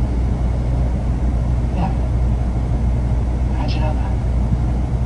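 A man answers calmly, heard faintly through a television speaker.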